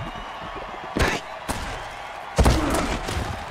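A heavy body crunches into another on impact.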